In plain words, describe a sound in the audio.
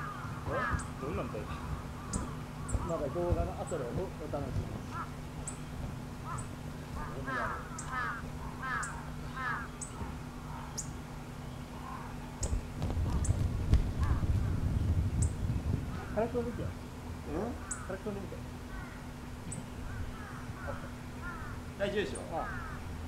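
Children call out and laugh at a distance outdoors.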